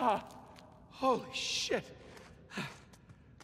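A man exclaims in a shaken voice.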